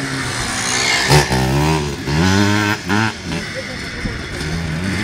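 A dirt bike engine revs loudly close by, then fades as the rider pulls away.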